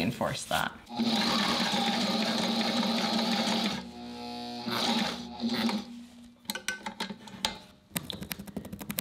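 A sewing machine whirs as it stitches.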